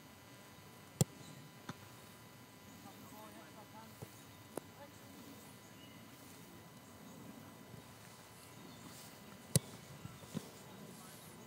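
A soccer ball is kicked with sharp thumps outdoors.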